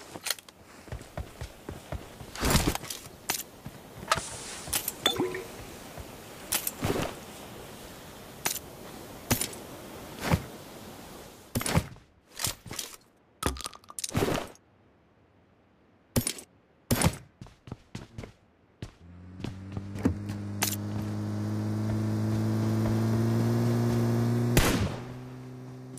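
Footsteps thud quickly on grass and floorboards.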